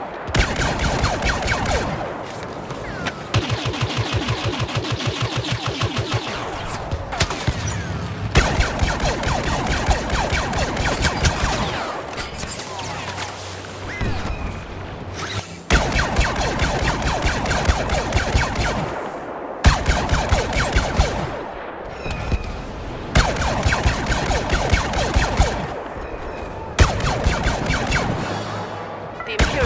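A heavy blaster fires in rapid bursts.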